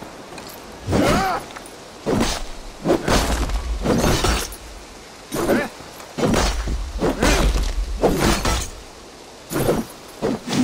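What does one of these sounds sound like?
Weapons swing and strike hard in a close fight.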